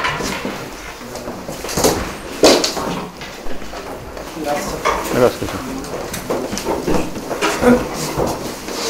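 Young people chatter nearby.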